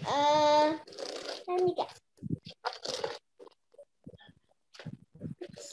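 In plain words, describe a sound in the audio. A woman speaks with animation over an online call, stretching some words in a sing-song voice.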